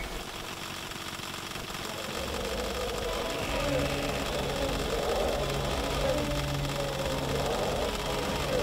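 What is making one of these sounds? Many arrows whoosh through the air in volleys.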